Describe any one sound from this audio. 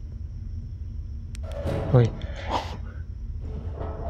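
A heavy metal door slams shut.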